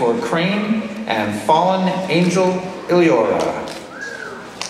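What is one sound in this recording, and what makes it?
A young woman sings through loudspeakers in a large hall.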